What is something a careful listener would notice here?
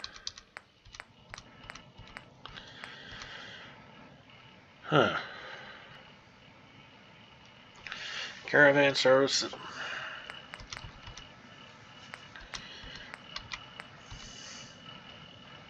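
Soft menu clicks tick repeatedly.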